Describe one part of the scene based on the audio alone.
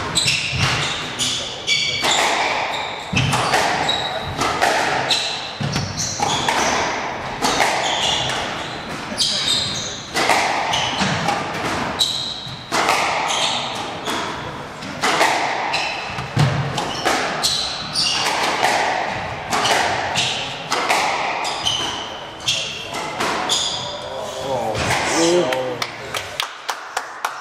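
A squash ball smacks sharply against walls and rackets in an echoing court.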